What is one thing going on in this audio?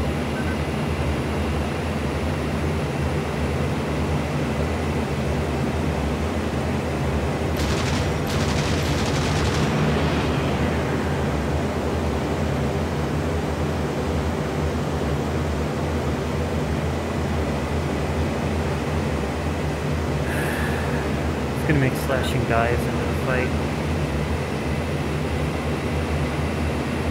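A propeller aircraft engine drones steadily and loudly.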